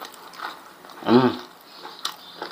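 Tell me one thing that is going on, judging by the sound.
A man hums with pleasure through a full mouth.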